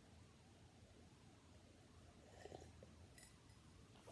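A woman sips a drink from a mug.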